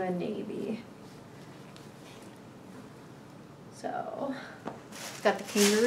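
Fabric rustles as a shirt is handled.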